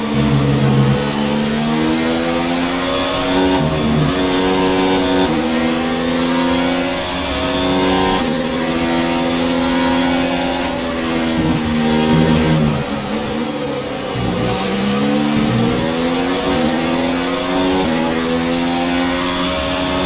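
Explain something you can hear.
A racing car engine screams at high revs, rising through the gears and dropping sharply when braking.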